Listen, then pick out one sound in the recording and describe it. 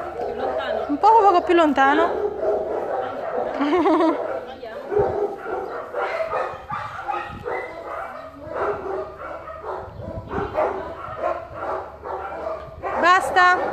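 A dog whines and yelps in high, wavering cries close by.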